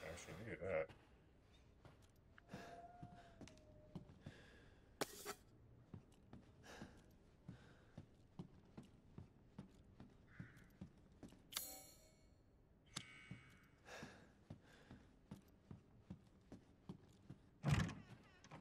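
Footsteps tread steadily on a wooden floor.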